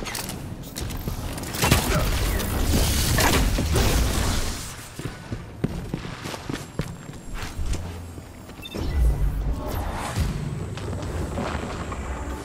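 A bow twangs as an arrow is loosed.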